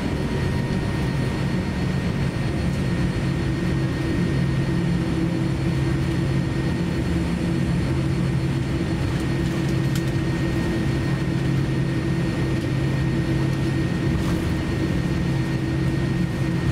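Jet engines hum and whine steadily from inside an aircraft cabin as the plane taxis.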